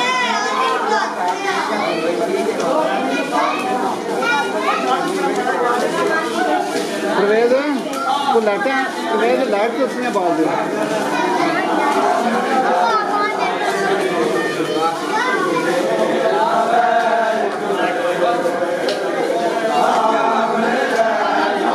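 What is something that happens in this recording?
Men beat their chests with their hands in rhythm.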